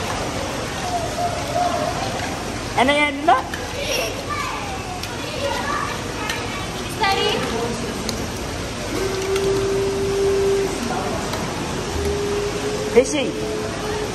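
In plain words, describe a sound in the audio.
Water splashes and trickles steadily.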